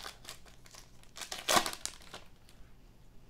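Cards rustle and flick as they are shuffled by hand.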